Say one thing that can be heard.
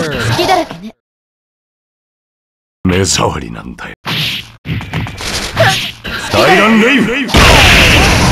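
Punches and kicks land with sharp hits in a fighting game.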